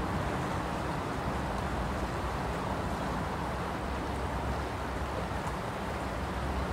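Water laps gently at a riverbank.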